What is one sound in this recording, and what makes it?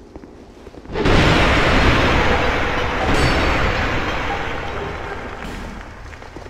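A wooden barrel smashes into clay pots with a loud crash.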